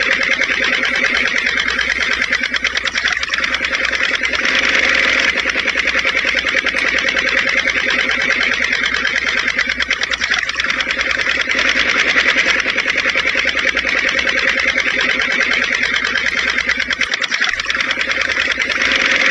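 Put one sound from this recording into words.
A small motor whirs steadily with a fast, buzzing rattle.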